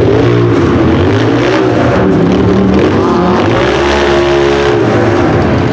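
An off-road buggy's engine revs hard, rising and falling in pitch.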